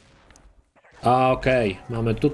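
A middle-aged man talks with animation into a microphone.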